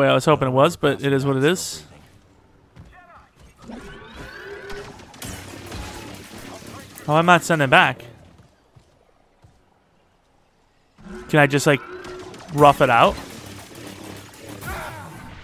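A lightsaber hums and swishes through the air.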